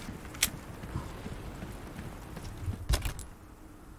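A menu clicks open with a short sharp sound.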